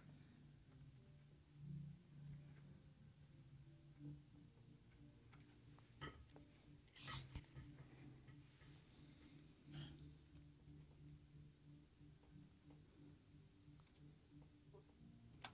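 A metal tool clicks and taps against a metal chassis.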